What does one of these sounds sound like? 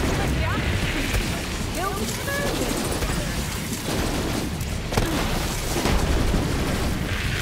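Guns fire in rapid bursts amid booming explosions.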